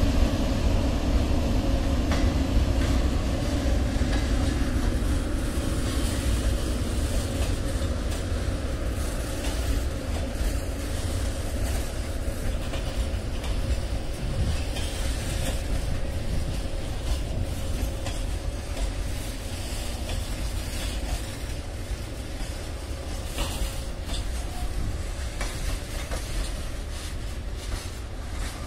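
A long freight train rumbles past with wheels clattering on the rails.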